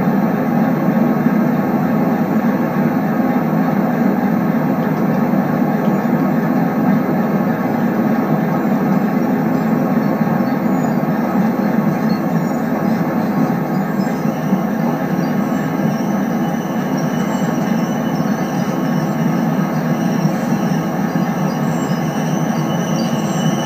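A train's motor hums and its wheels rumble steadily over the rails, heard through a loudspeaker.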